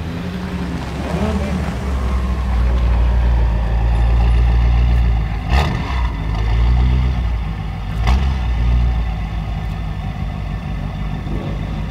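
A car engine idles with a deep rumble and revs up loudly.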